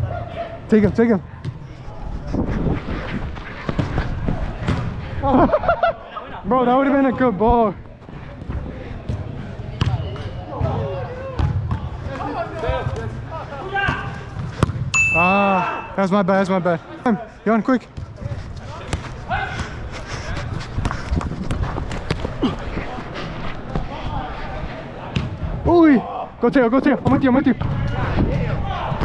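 Young men shout to each other during a game in a large echoing hall.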